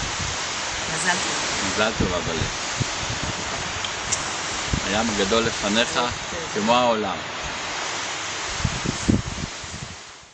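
A middle-aged man speaks cheerfully close by.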